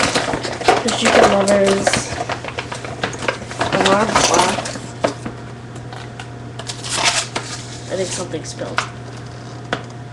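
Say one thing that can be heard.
Plastic packaging crinkles and rustles.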